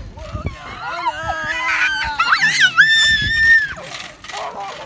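A small boy laughs and squeals close by.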